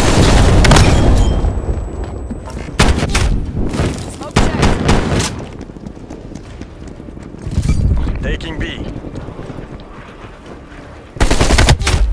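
Rapid gunfire bursts loudly in sharp volleys.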